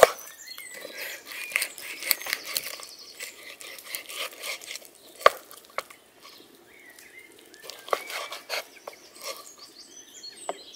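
A knife taps on a wooden cutting board.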